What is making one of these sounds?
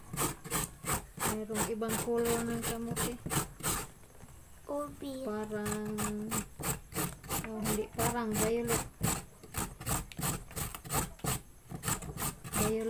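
A vegetable is grated quickly and rhythmically on a metal grater.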